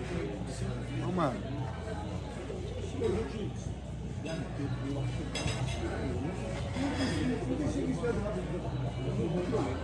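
A young man talks close by, in a casual way.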